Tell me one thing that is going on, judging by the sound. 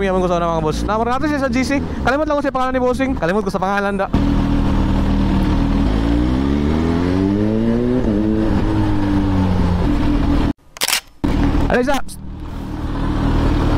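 A motorcycle engine hums steadily, revving up and easing off as the bike rides along.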